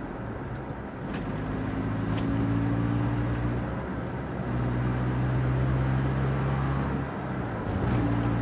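A car engine hums steadily from inside the car, rising and falling as it drives.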